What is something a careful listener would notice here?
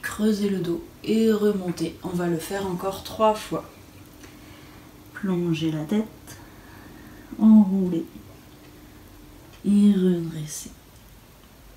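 A woman speaks calmly and slowly, close to a microphone, with long pauses.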